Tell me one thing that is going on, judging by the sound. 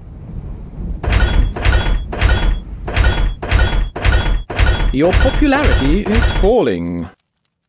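Coins clink repeatedly in quick succession.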